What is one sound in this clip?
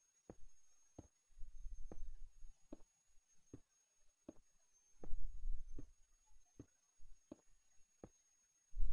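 Game footsteps tap on stone blocks.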